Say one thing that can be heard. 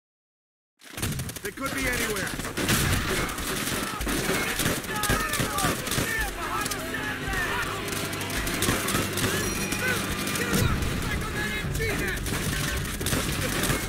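Rifles fire in rapid bursts of gunshots.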